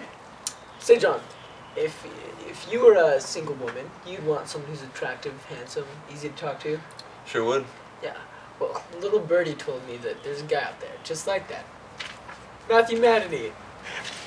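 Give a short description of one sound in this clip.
A second young man answers in a relaxed voice.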